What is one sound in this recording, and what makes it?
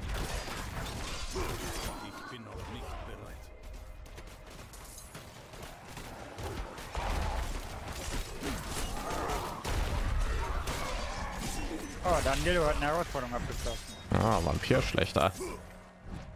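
Swords clash and magic blasts crackle in a fight.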